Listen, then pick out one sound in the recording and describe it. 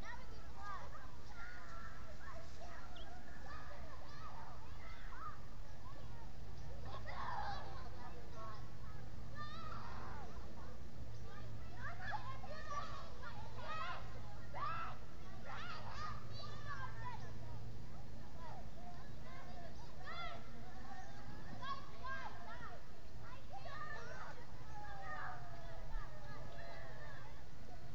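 Young birds chirp and whistle in short calls close by.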